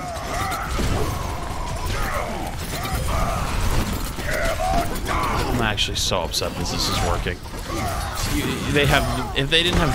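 Video game gunfire rattles rapidly.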